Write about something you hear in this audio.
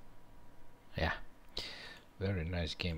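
A man speaks calmly and briefly, close to a microphone.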